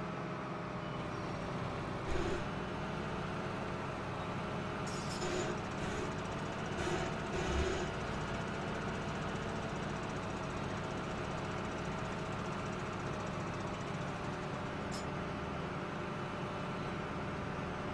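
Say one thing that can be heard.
A combine harvester engine drones steadily as the machine drives along.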